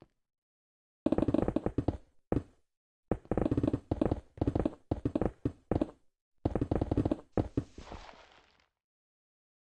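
A pickaxe scrapes and crunches through stone blocks in quick bursts.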